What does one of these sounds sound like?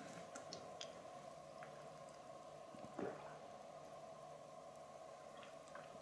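A man sips water from a glass.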